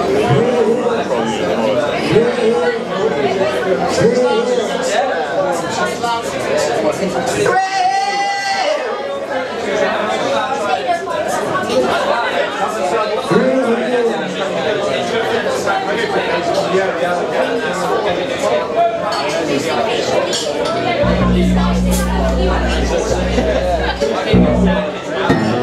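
A young man sings into a microphone through loudspeakers.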